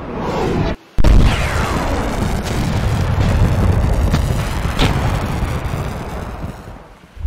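A huge explosion booms and roars, then slowly fades.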